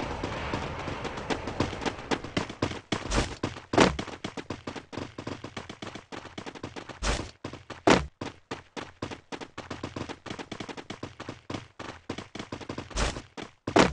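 Quick footsteps run over grass and dirt.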